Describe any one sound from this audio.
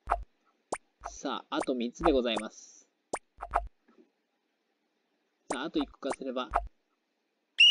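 Short electronic game sound effects chirp and blip.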